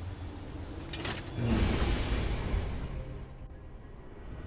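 A heavy stone door grinds open with a deep rumble.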